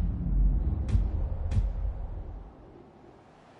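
A helicopter's rotor thumps and rumbles close by, then fades.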